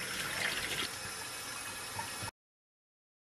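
Tap water runs into a pot.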